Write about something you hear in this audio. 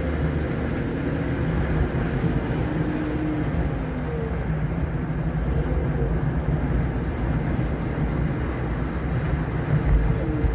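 Tyres roll with a low rumble over a smooth road.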